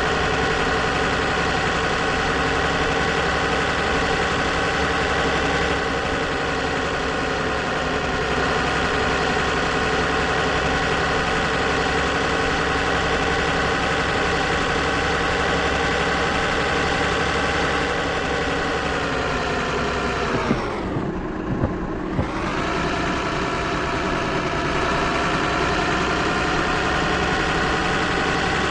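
A heavy truck engine drones steadily, briefly dropping low as it slows and then pulling up again.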